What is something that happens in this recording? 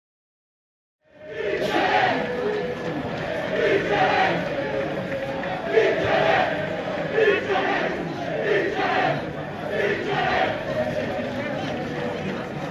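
A crowd of fans chants and sings loudly in an open stadium.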